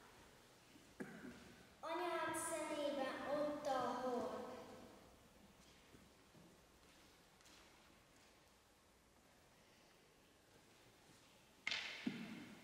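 A young girl sings through a microphone in an echoing hall.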